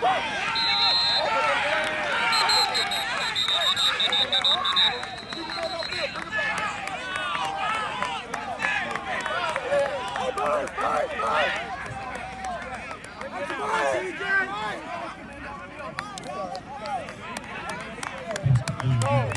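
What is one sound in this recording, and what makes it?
A crowd of spectators shouts and cheers outdoors at a distance.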